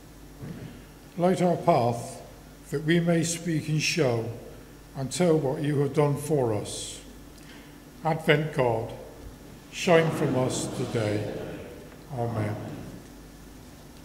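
A man reads aloud calmly through a microphone in a large echoing room.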